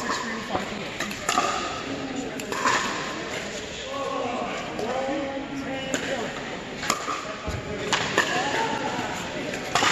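Men and women talk and call out across the courts, echoing.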